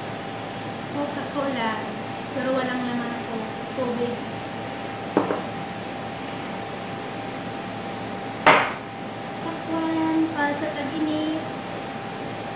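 A woman talks calmly close by, in short bursts.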